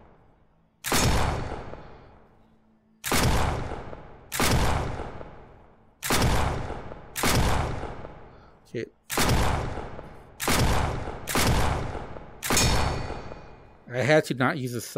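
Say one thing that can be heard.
A gun fires single loud shots that echo through a large hall.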